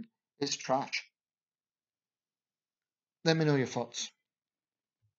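A young man talks casually and close to a webcam microphone.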